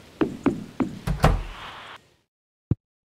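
A door opens and shuts with a thud.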